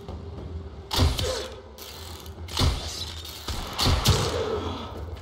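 A bowstring twangs as arrows are shot.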